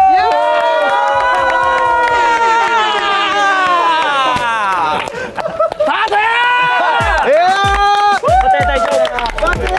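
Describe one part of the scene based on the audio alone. A group of young men and women cheer and shout excitedly outdoors.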